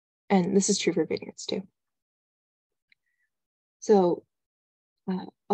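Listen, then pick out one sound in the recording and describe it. A young woman speaks calmly over an online call, in short bursts.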